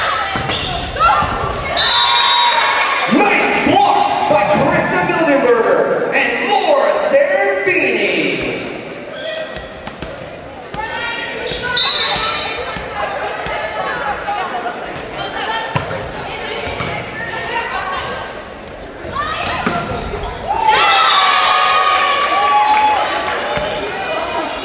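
A crowd cheers loudly in a large echoing gym.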